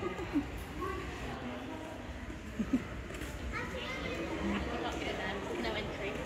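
A young child talks softly nearby.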